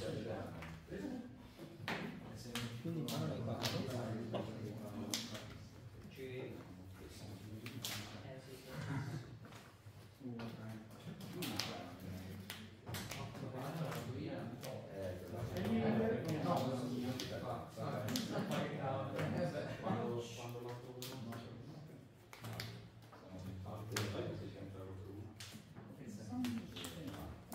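Playing cards tap and slide softly onto a play mat.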